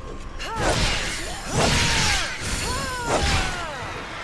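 A large creature snarls.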